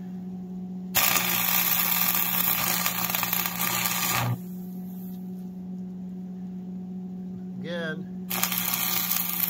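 An electric welding arc crackles and sizzles loudly.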